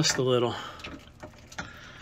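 Water trickles briefly from a small tap.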